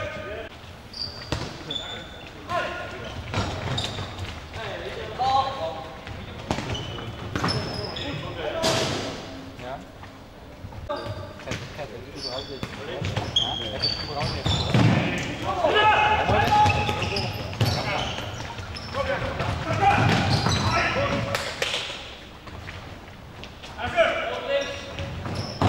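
A ball thuds on a wooden floor and echoes in a large hall.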